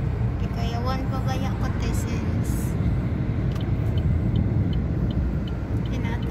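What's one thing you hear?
A car's engine and tyres rumble steadily at highway speed from inside the car.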